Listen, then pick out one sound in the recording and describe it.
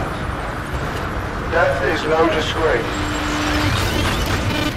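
A man speaks calmly over a radio.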